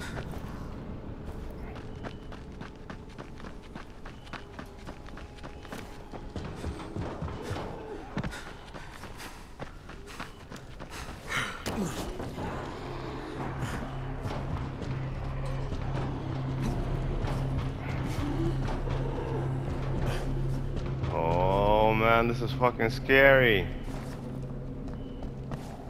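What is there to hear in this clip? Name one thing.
Footsteps run quickly and thud on hard ground and metal roofing.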